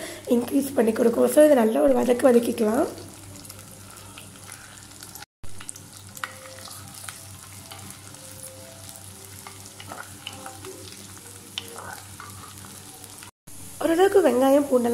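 Oil sizzles softly in a pot.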